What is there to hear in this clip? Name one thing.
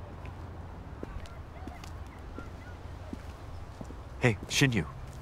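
Footsteps approach on a path.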